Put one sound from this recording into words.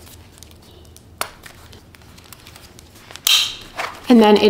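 Paper banknotes rustle as they are flipped through.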